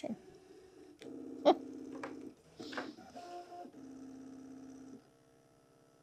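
A cutting machine whirs and hums steadily.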